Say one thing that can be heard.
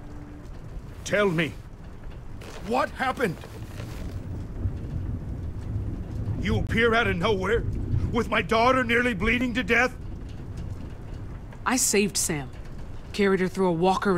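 A man speaks in a strained, emotional voice.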